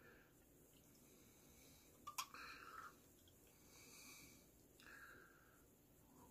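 Beer pours from a bottle into a glass, fizzing.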